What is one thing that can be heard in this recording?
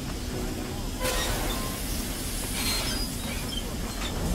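Gas bursts out with a loud rushing hiss.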